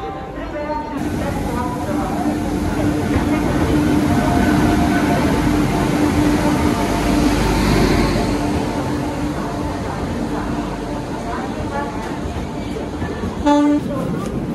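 A train rumbles into the station and roars past close by.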